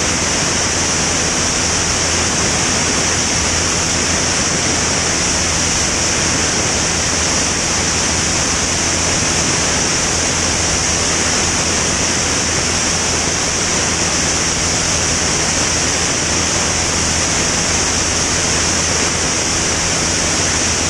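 A small propeller plane's engine drones loudly and steadily.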